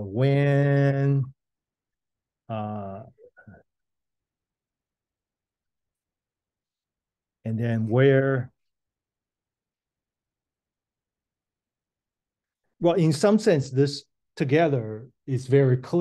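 A man speaks in short, calm phrases into a close microphone, with long pauses in between.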